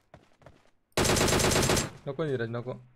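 A rifle fires a short, loud burst of shots.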